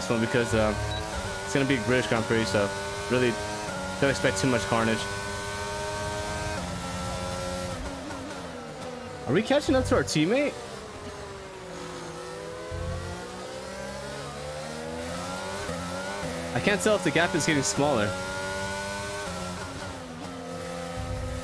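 A racing car engine whines loudly, rising in pitch and dropping as gears change.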